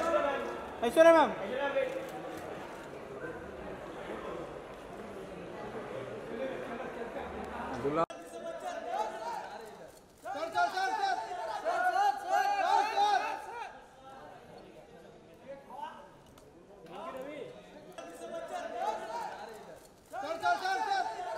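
A crowd of men and women chatters and calls out nearby.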